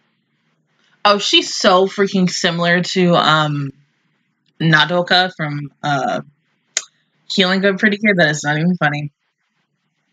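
A young woman talks animatedly and close into a microphone.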